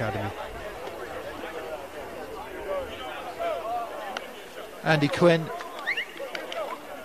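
Several young men call out and chatter across an open outdoor field.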